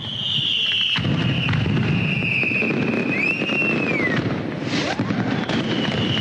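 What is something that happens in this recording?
Fireworks burst with sharp bangs and crackles.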